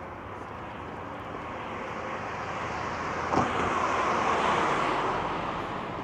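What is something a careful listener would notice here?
A car approaches and passes on the road.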